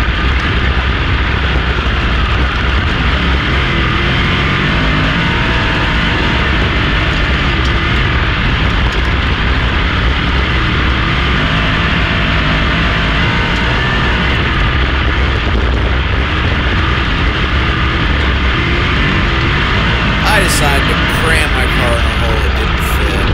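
A race car engine roars loudly up close, revving as it slides through the turns.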